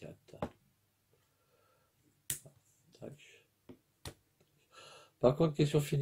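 Small plastic parts click in a man's hands.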